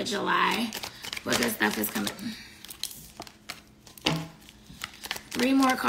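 Paper crinkles and rustles in a woman's hands.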